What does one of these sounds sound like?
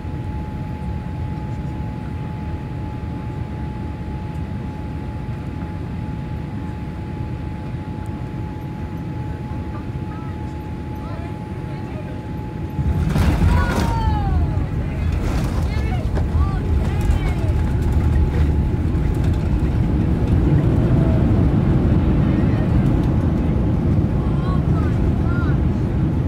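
Jet engines hum steadily from inside an airliner cabin.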